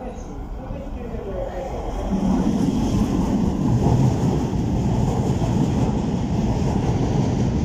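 A train approaches and rumbles loudly past, its wheels clattering on the rails.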